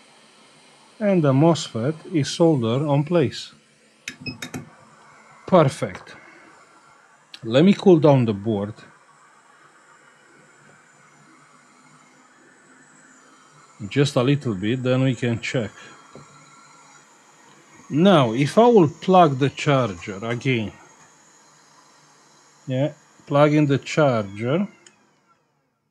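A middle-aged man talks calmly and close into a microphone, in short bursts with pauses.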